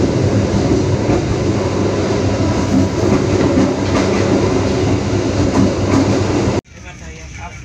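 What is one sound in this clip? A train rumbles loudly along the tracks.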